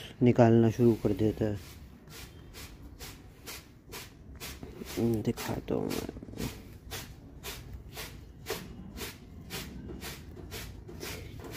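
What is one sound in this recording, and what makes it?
A hand brushes lightly against a prickly plant.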